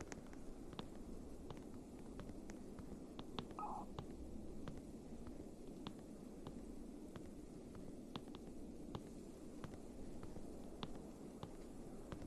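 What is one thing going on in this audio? Wind howls steadily in a snowstorm.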